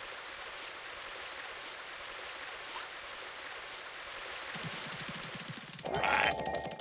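A waterfall rushes and splashes steadily.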